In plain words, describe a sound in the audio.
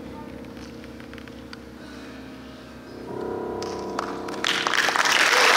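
A piano plays.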